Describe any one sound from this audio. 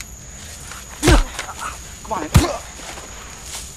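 Two men scuffle in rustling grass.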